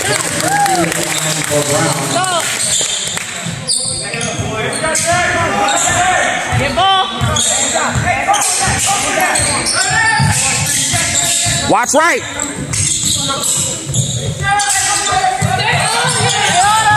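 Sneakers squeak sharply on a hard gym floor.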